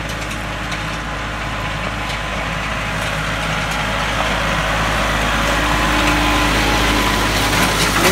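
A tractor engine rumbles steadily and grows louder as it drives closer.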